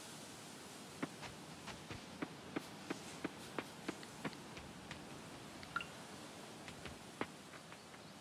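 Light footsteps tread steadily on soft ground.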